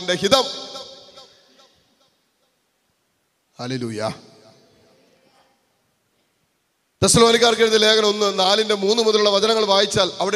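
A man speaks with animation into a microphone, heard through loudspeakers with a ringing echo.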